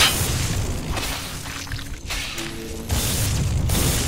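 Electricity crackles and buzzes sharply.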